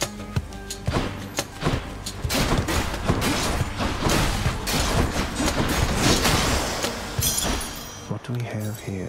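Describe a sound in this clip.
Rapid video game combat sounds clash and thud.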